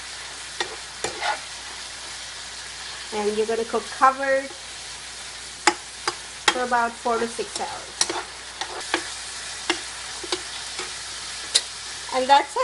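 A metal spatula scrapes and taps against a frying pan.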